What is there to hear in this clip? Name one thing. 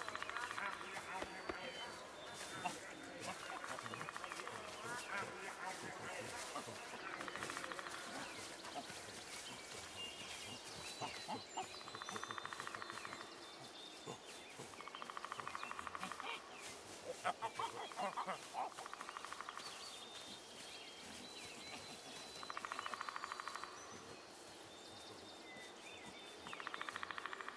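Animals rustle softly through tall grass outdoors.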